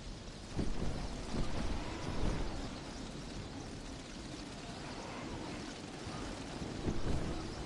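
Wind rushes steadily past a gliding game character.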